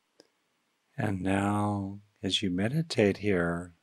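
An older man speaks calmly and close into a microphone.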